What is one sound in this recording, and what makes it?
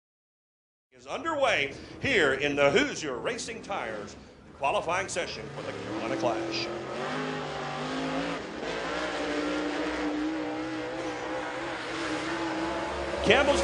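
A race car engine roars and revs up and down.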